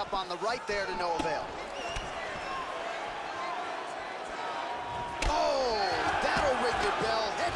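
Punches land on a body with dull thuds.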